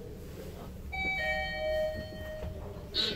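An elevator chime rings.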